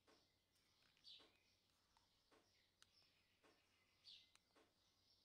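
A small button clicks softly several times.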